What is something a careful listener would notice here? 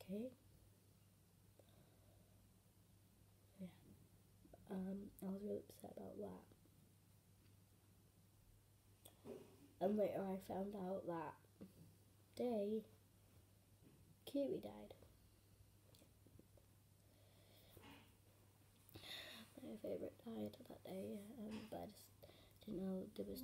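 A girl talks casually and close up, in short bursts with pauses.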